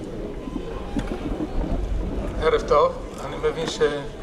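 A man speaks into a microphone through loudspeakers.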